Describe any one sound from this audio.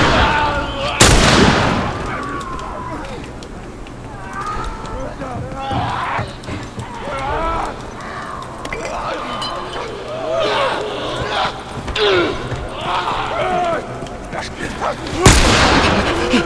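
A gunshot cracks loudly and rings out.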